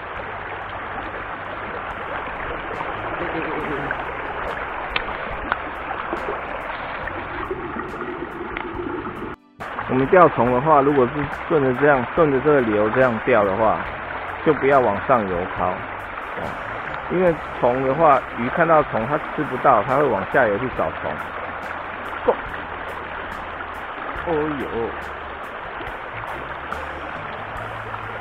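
A shallow river rushes and babbles over stones nearby.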